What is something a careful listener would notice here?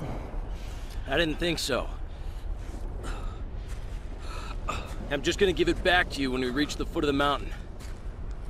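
A man answers calmly in a deep voice.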